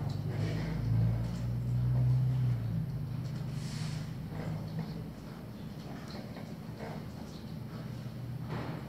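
A pencil scratches softly on paper.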